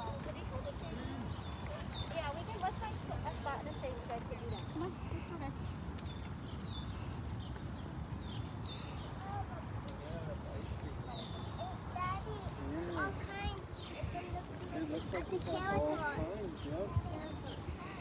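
Stroller wheels rumble along a paved path.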